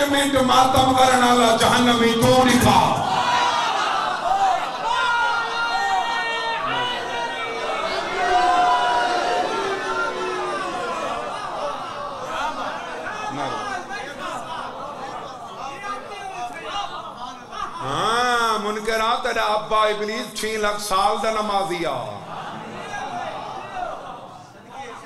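A man speaks forcefully and emotionally into a microphone, his voice carrying through loudspeakers in a reverberant space.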